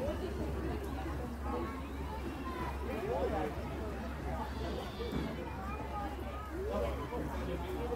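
A young boy talks calmly close by.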